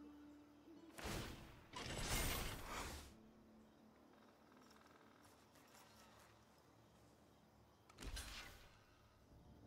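Short digital whooshes and chimes from a card game play.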